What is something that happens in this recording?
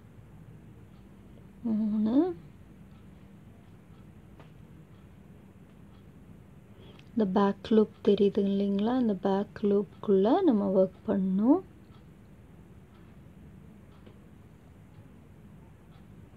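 A crochet hook softly pulls yarn through loops.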